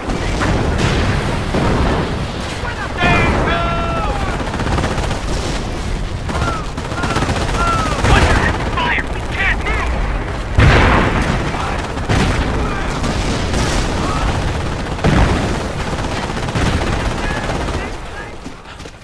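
Gunfire crackles rapidly in a battle.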